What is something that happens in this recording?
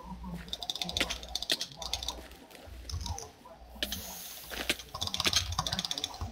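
A sword strikes repeatedly with short sharp hits.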